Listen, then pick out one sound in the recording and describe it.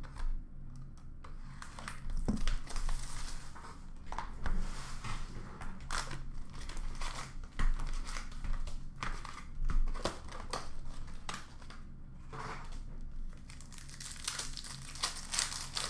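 Cards and plastic packs rustle and clack as hands sort through them.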